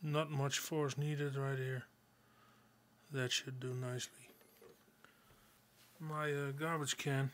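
A plastic lid clicks into place.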